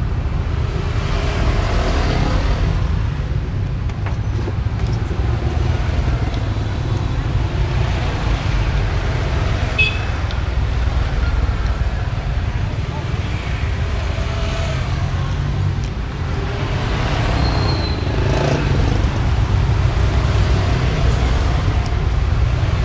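Traffic rumbles steadily outdoors nearby.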